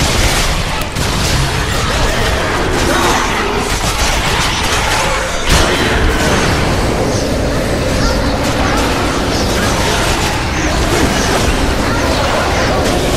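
Metal blades swish and clang in a fast fight.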